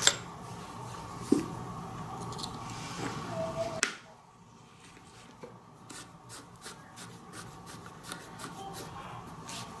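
Metal parts of a flashlight scrape and click as they are screwed together.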